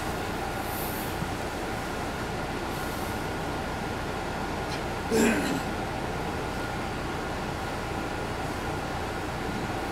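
A bus engine idles with a steady low rumble, heard from inside.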